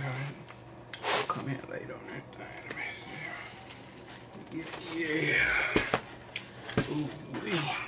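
A cardboard pizza box rustles and thumps.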